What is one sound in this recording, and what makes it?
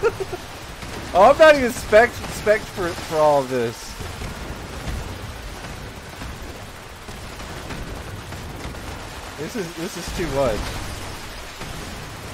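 A heavy gun fires rapidly with booming explosions.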